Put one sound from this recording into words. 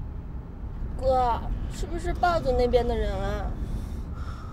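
A young woman asks a question in a car.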